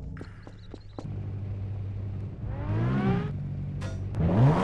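A car engine hums steadily and then revs up.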